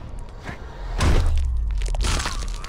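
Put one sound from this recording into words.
A body slams hard onto wooden boards.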